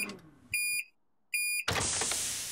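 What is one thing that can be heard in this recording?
A microwave oven beeps twice.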